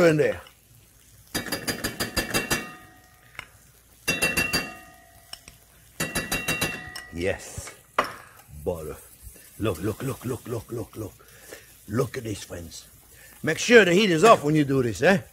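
A sauce bubbles and sizzles gently in a pot.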